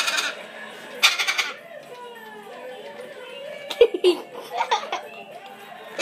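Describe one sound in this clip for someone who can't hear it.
A parrot squawks and chirps close by.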